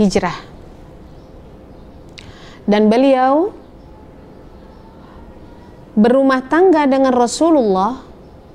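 An elderly woman chants in a sustained, melodic voice close by.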